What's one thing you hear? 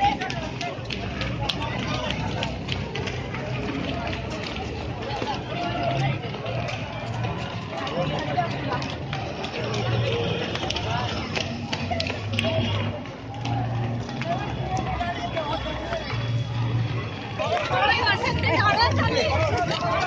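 A crowd of young men and women chatter and call out outdoors.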